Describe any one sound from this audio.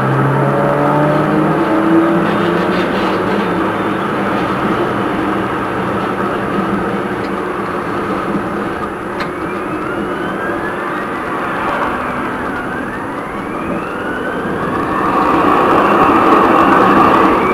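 A tram rolls slowly past close by.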